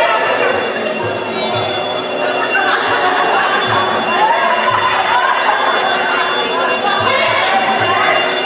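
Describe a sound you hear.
A crowd of people talk and shout with excitement in an echoing room.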